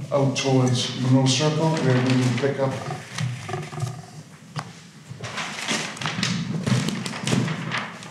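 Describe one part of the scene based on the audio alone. An older man speaks into a handheld microphone, heard through loudspeakers in an echoing hall.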